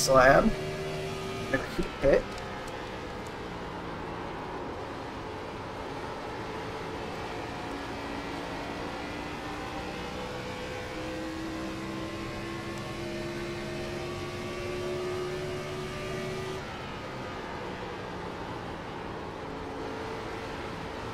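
A race car engine roars steadily at high speed.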